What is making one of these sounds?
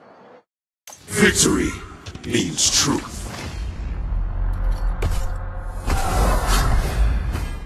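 A loud magical whoosh swells with a deep, ominous rumble.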